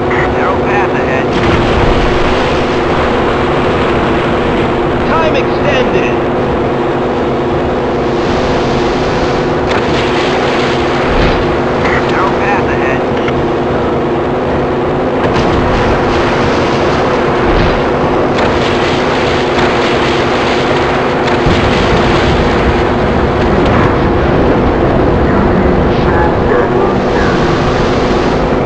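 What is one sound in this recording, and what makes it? A racing powerboat engine roars at full throttle.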